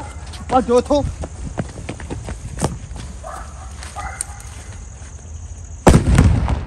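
Fireworks shoot off with sharp bangs and pops.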